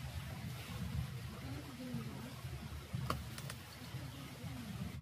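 A shallow stream trickles over rocks.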